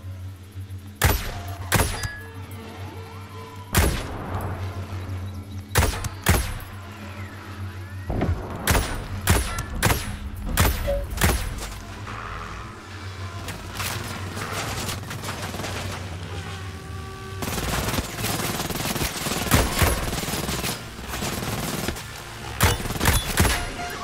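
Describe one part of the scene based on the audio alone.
Sniper rifle shots crack loudly, one after another.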